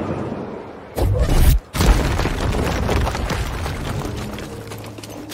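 Rocks crumble and crash down loudly.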